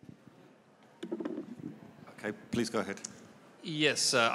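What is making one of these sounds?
A man speaks into a microphone, heard through loudspeakers in a large hall.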